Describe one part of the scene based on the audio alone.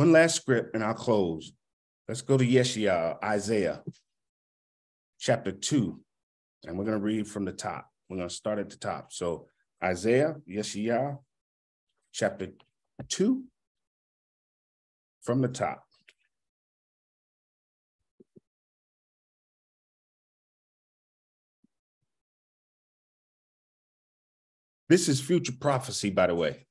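A man speaks with animation into a nearby microphone, pausing often.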